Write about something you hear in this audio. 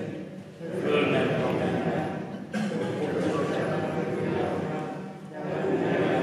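A man chants steadily through a microphone in a large echoing hall.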